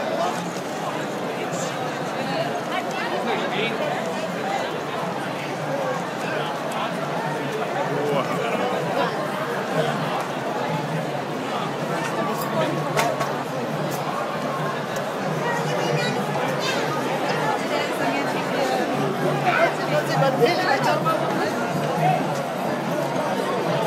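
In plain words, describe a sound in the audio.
A large crowd chatters and shouts all around.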